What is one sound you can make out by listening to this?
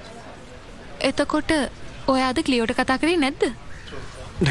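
A young woman speaks with surprise.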